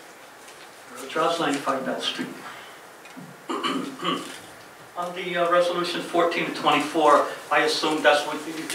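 A man speaks into a microphone, heard through loudspeakers in a large room.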